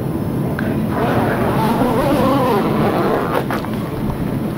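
A plastic body bag rustles as it is opened.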